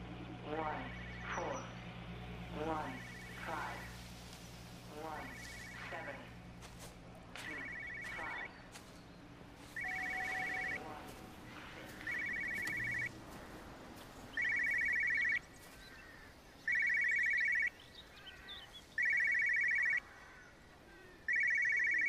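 A telephone rings in repeated bursts, growing louder and closer.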